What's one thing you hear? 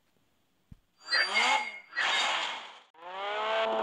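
A rushing whoosh sweeps past.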